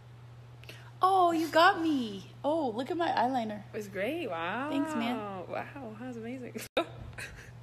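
Young women talk and laugh playfully close by.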